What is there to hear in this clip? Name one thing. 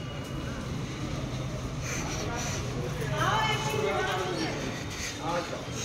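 People chatter nearby outdoors.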